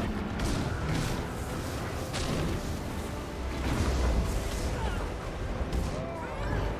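Magic spells and weapons clash and crackle in a busy fight.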